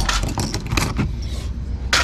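A metal chain jingles softly.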